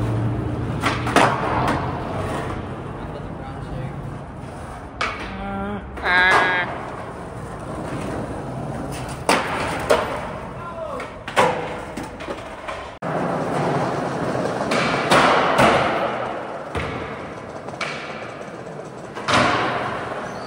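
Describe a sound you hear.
Skateboard decks clack and snap on the ground.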